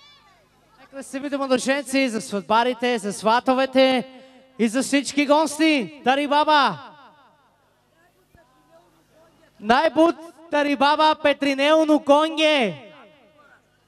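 A man sings loudly through a microphone and loudspeakers.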